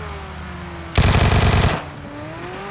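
A gun fires a rapid burst of shots.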